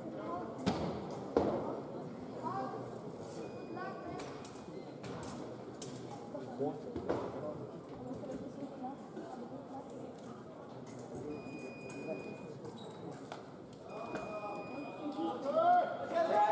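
A murmur of voices echoes in a large hall.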